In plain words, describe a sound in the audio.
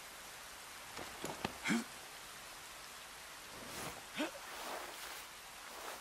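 Gear rustles and scrapes on rough ground.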